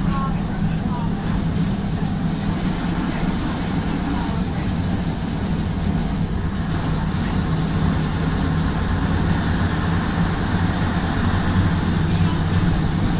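A bus engine rumbles and drones steadily from inside the bus.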